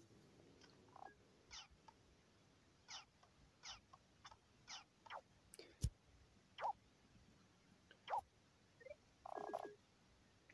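Short electronic game blips and chimes sound now and then.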